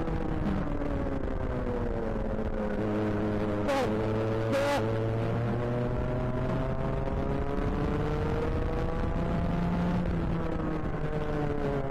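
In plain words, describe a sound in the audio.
A kart engine buzzes loudly up close, rising and falling in pitch.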